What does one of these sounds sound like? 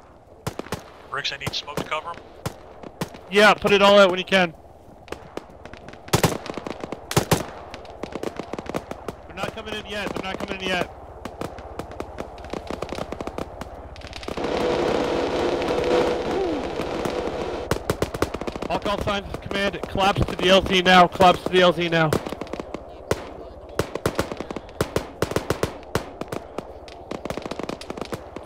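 Footsteps crunch on gravel and concrete.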